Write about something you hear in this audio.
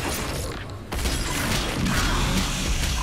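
A monster is torn apart with a wet, crunching sound.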